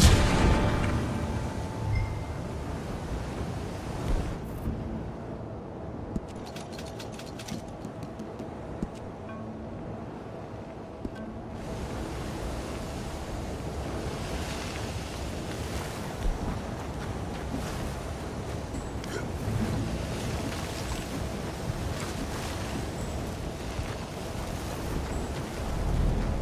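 Wind blows hard in a dust storm.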